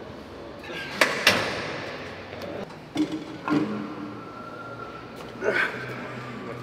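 A cable machine's weight stack clanks.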